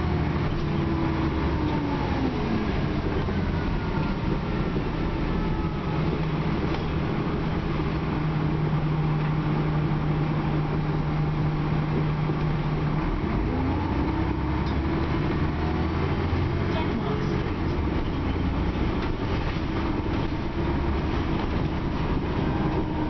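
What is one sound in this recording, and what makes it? A bus interior rattles and creaks as the bus moves.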